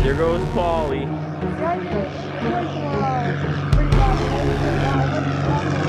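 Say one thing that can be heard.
A small model plane engine buzzes overhead, its pitch rising and falling as it flies past.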